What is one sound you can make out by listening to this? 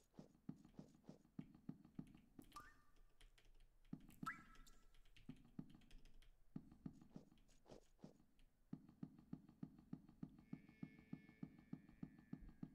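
Footsteps tread at a steady, quick pace.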